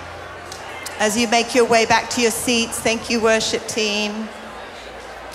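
A woman sings loudly through a microphone in a large hall.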